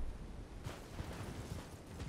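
A horse gallops through grass.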